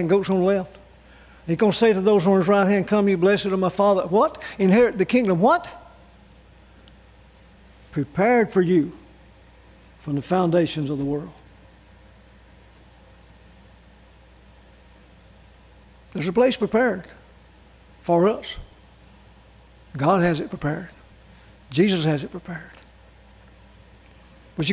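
An elderly man speaks slowly and deliberately into a microphone, with long pauses.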